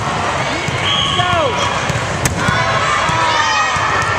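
A volleyball is struck with a dull slap.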